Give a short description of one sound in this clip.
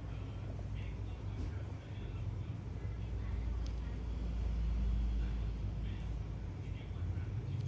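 Rubber gloves rub and squeak softly against skin.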